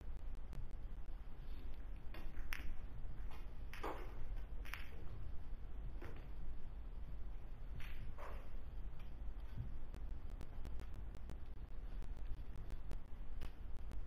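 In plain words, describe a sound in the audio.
Pool balls click sharply against each other.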